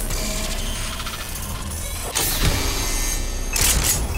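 A metal case unlatches and hums open with a bright electronic shimmer.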